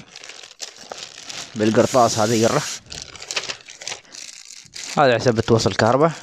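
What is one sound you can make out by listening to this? Plastic wrapping rustles and crinkles close by.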